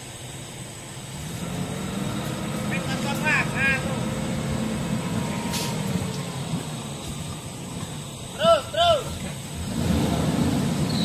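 An off-road vehicle's engine rumbles and revs as it churns through deep mud.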